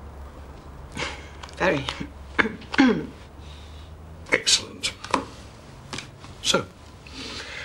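An elderly man speaks cheerfully up close.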